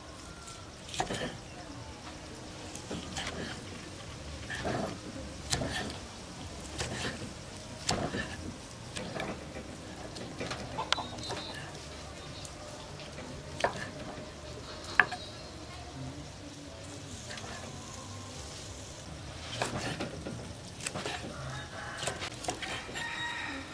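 A knife chops through meat and thuds on a wooden board.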